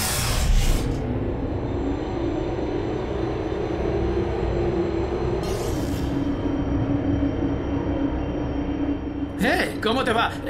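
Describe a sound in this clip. A lift hums steadily as it moves.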